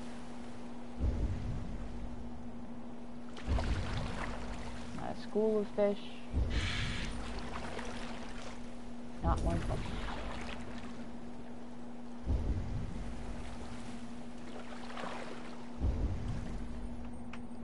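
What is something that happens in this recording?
Water splashes in regular strokes as a pole pushes a small boat along.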